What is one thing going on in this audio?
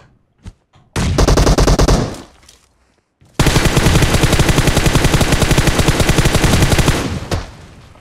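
A rifle fires in rapid bursts, sharp and loud.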